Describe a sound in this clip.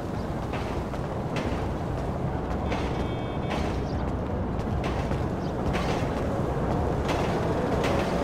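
Footsteps scuff on pavement.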